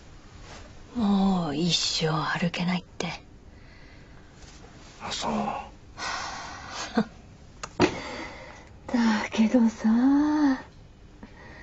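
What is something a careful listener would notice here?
A middle-aged woman speaks quietly nearby.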